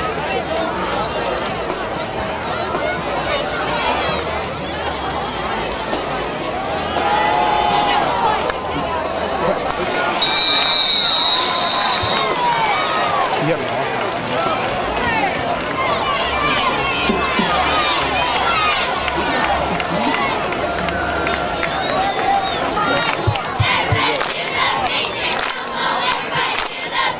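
A large crowd cheers and chatters in outdoor bleachers.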